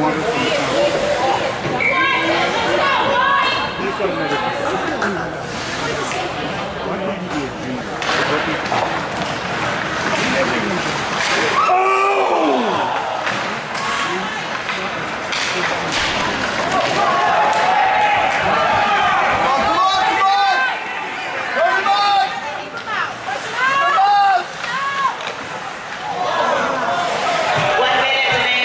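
Ice skates scrape and carve across ice in an echoing rink.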